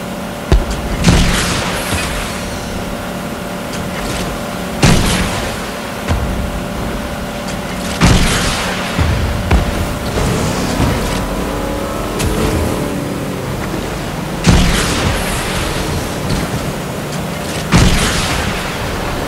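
Water splashes and sprays against a speeding boat's hull.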